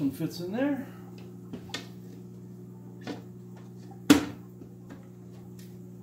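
An aquarium filter hums steadily.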